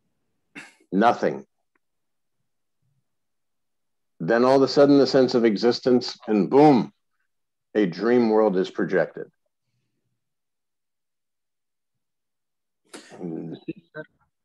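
A middle-aged man speaks calmly, close to a microphone, with pauses.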